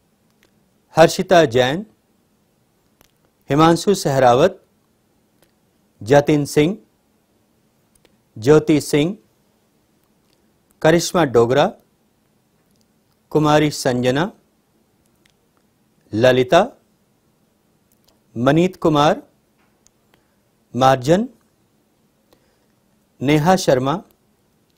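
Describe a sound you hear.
A man reads out short phrases one at a time through a microphone, with pauses between them.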